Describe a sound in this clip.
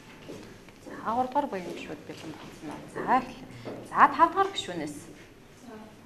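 A teenage girl speaks.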